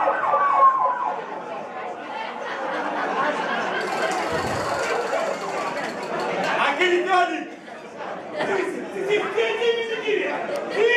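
A man speaks into a microphone, heard through loudspeakers in a large hall.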